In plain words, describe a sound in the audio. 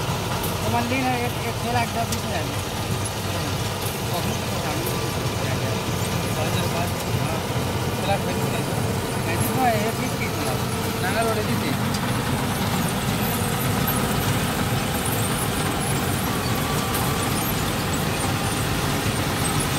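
A combine harvester engine rumbles steadily nearby.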